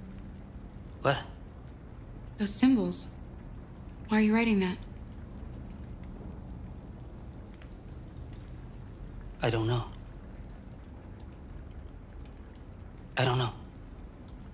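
A young man speaks quietly and hesitantly, close by.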